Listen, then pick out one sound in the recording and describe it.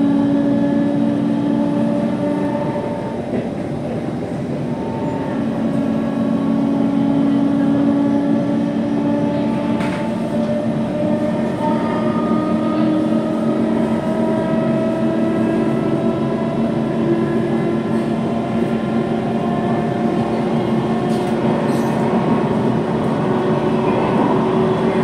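A train rumbles and whines steadily along its track.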